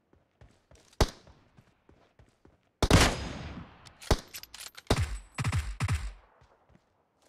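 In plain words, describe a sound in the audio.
Rifle shots crack loudly, with a rolling echo after each.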